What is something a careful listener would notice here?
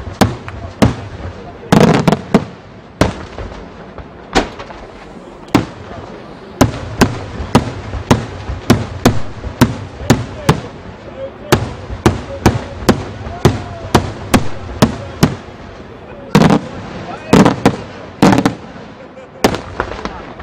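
Fireworks burst with sharp bangs high overhead, one after another.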